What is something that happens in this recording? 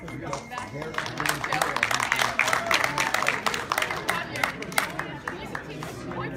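Spectators clap and cheer loudly.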